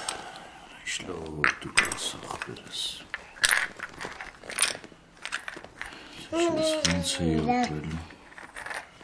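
A man talks gently and playfully up close.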